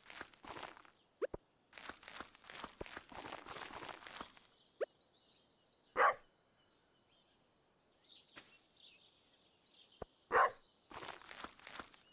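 Footsteps patter quickly on soft ground.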